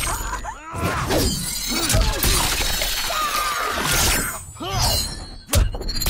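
A spinning blade whirs and strikes with a wet splatter.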